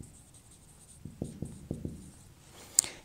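A marker taps and scratches on a whiteboard.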